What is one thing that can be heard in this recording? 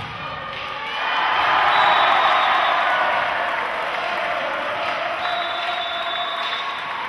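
A crowd cheers loudly in an echoing indoor hall.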